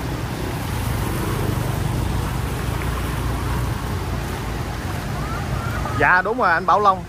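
Motor scooter engines hum as bikes ride through floodwater.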